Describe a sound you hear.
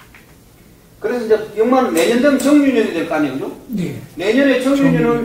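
A man speaks calmly and clearly, close by, as if explaining.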